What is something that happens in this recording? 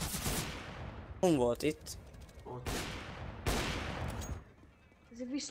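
A sniper rifle fires loud cracking shots that ring out and fade.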